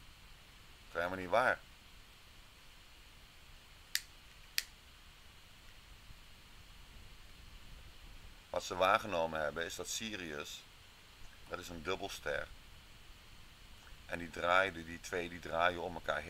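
A man speaks calmly through a microphone, in short bursts.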